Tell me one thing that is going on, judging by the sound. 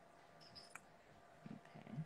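A fine brush strokes lightly across a fingernail.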